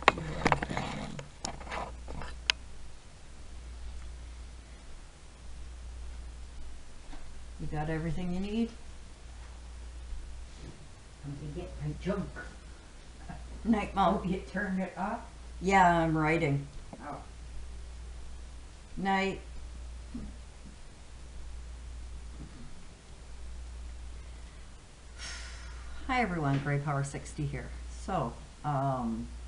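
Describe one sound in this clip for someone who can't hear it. An older woman talks calmly close by, in short bursts with pauses.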